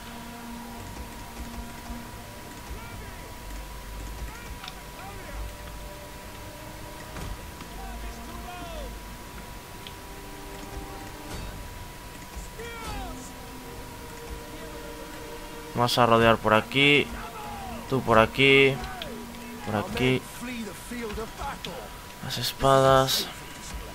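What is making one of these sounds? Soldiers' footsteps tramp as troops march across a field.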